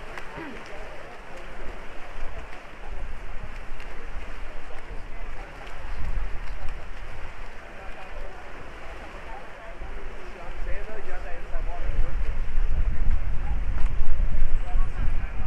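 Water splashes as swimmers thrash through a pool.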